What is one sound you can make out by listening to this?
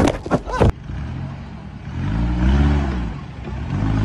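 A truck engine revs.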